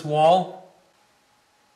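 A man shouts out loudly nearby.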